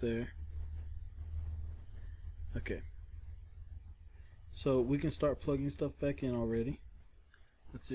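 Plastic parts of a tablet tap and click softly as they are handled.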